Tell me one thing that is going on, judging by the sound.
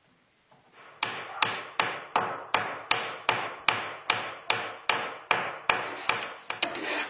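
A hammer taps a chisel into wood with sharp, quick knocks.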